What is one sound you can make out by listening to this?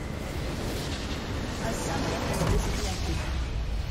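A large blast explodes with a deep rumble.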